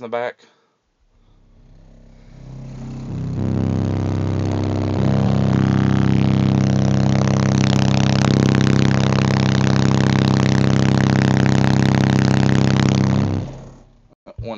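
A car engine revs up and holds a steady, loud drone, then cuts off.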